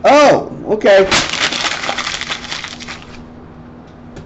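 Paper rustles and crumples in a man's hands.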